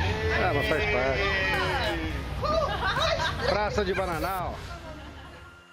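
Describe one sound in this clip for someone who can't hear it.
Men talk with one another nearby.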